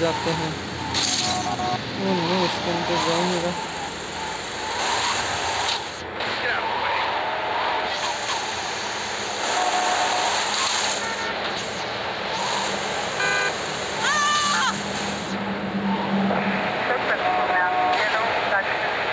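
A car engine roars and revs.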